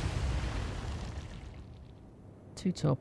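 A torpedo blast throws up a roaring plume of water.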